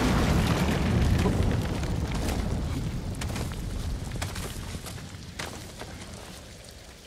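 Heavy rain pours down steadily outdoors, slowly growing quieter.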